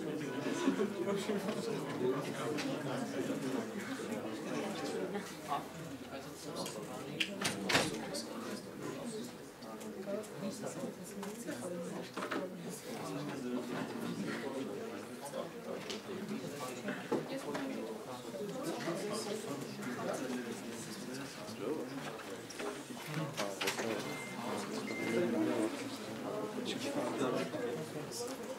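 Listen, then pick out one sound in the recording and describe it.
A crowd of young people chatters in an echoing room.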